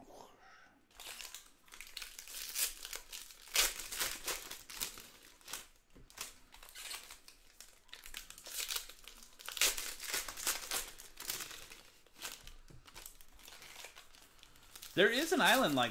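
Foil packs crinkle and tear as they are ripped open.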